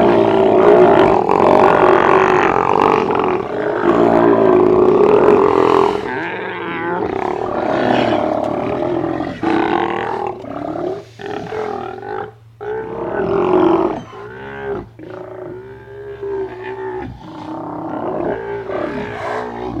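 Sea lions roar and groan loudly, close by.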